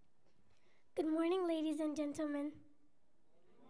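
A young girl sings loudly through a microphone in a large hall.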